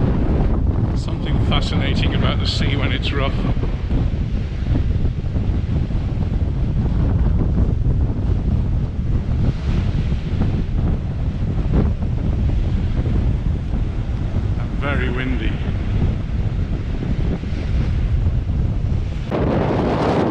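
Strong wind blusters and rumbles outdoors.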